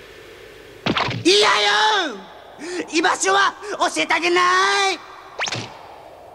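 A monstrous creature shouts in a rough voice.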